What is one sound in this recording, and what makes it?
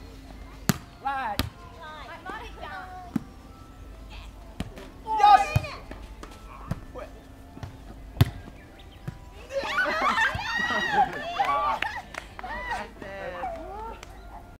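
Young women shout and laugh nearby outdoors.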